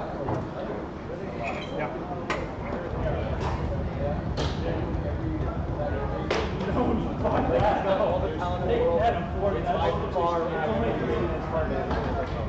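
Men and women chatter in the background.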